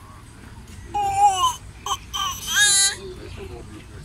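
A baby squeals and babbles.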